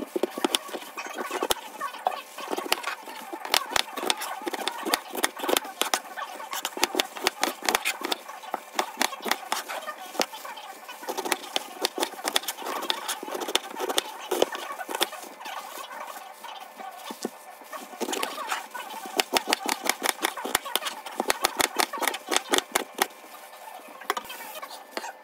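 A knife chops through crisp cabbage on a cutting board with quick repeated thuds.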